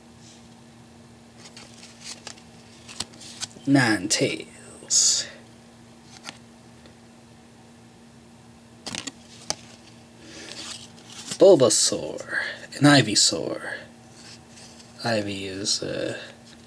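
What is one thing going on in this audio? Stiff cards rustle and click as hands shuffle them.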